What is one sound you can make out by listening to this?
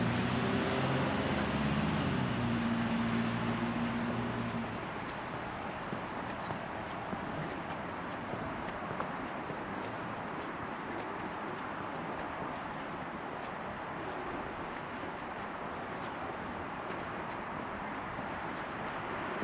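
Wind rustles through tree leaves outdoors.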